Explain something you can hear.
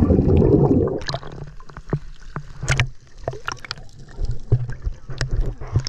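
Water splashes and drips as the recorder breaks the surface.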